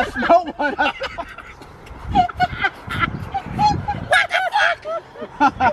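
Several adults laugh loudly together outdoors.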